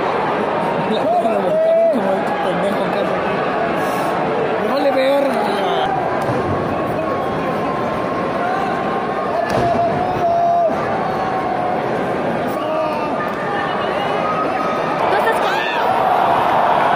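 Men in the crowd shout and whistle loudly now and then.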